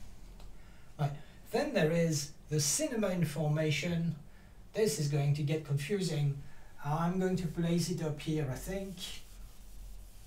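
An elderly man speaks calmly and clearly nearby.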